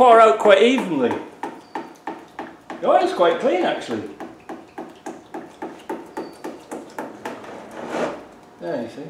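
Oil drips steadily into a pan below.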